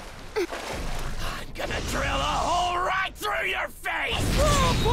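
A man shouts a threat in a rough, gravelly voice.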